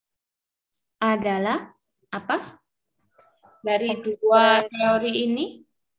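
A woman speaks in short phrases through an online call.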